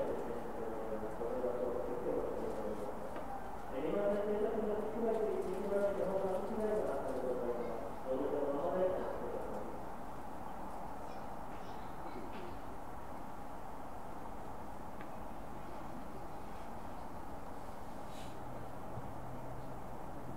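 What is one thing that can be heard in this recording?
A stopped train hums steadily.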